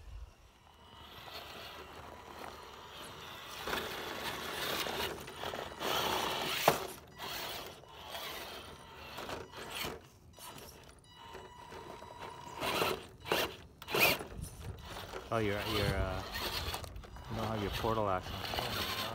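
A small electric motor whirs and strains as a toy truck crawls over rocks.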